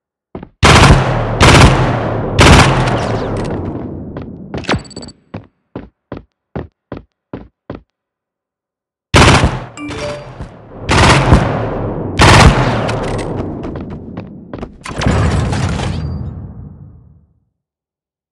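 A pistol fires shots, each with a ringing tail.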